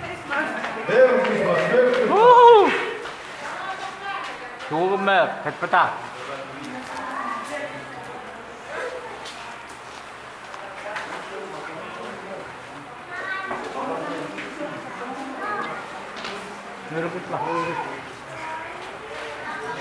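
Several men and women talk and call out nearby, in a large echoing hall.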